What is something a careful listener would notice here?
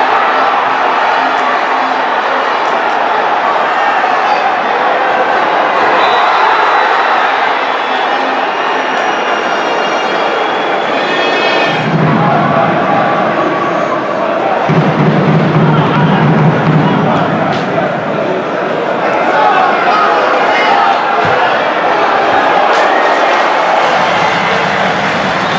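A small crowd chants and cheers in a large open stadium.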